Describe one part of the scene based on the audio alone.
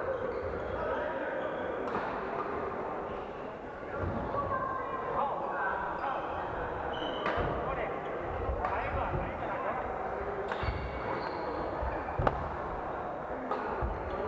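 Men and women call out and chat around a large echoing hall.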